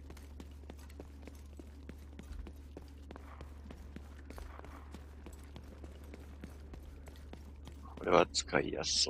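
Footsteps thud quickly on pavement.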